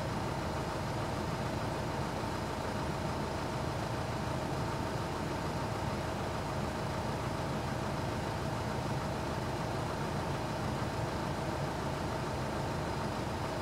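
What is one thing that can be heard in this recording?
An engine idles steadily close by.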